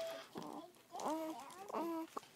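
A baby coos softly close by.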